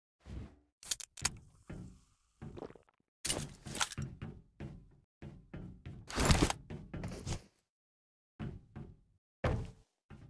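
Footsteps tap quickly on a hard surface.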